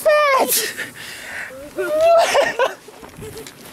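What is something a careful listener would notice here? A young woman speaks and laughs close by, with animation.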